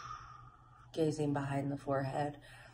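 A woman hums softly close by.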